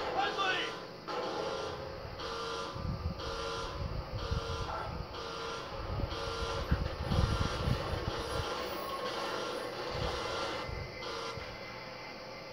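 Music with a steady pulsing beat plays through a television speaker.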